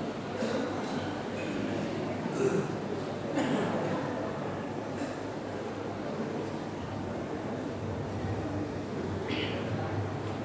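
A crowd of men murmurs and talks in a large echoing hall.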